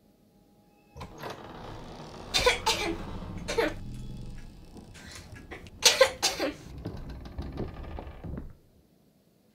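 A wooden ceiling hatch creaks open and a folding ladder slides down.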